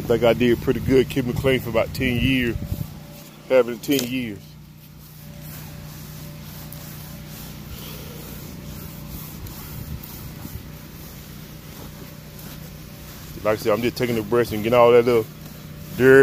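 A stiff brush scrubs across wet vinyl.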